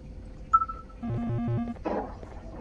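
An electronic signal beeps in quick pulses.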